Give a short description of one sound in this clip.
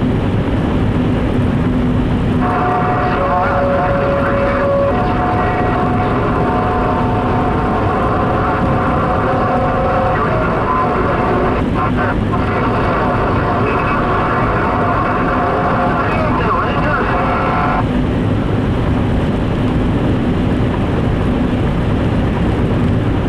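Tyres hum steadily on a wet road from inside a moving car.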